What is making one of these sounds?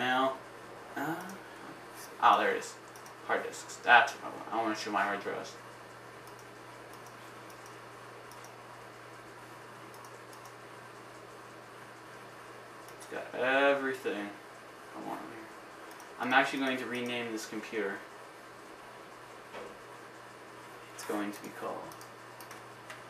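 A young man speaks calmly close by, in short bursts.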